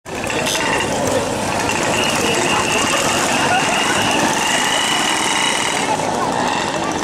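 Moped engines buzz and putter close by as they ride past.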